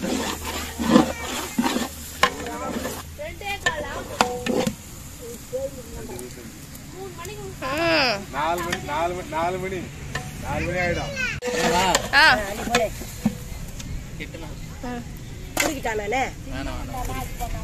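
A metal ladle scrapes and clanks against a metal pot.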